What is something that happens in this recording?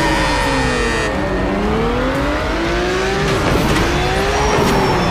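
Racing car engines roar and rev up and down.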